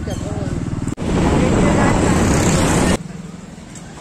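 Traffic roars past on a road.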